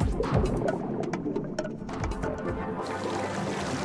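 Scuba bubbles rumble and gurgle underwater.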